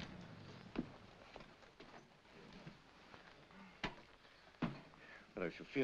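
A car door opens and slams shut.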